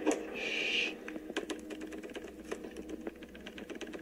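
Fingers tap rapidly on a keyboard.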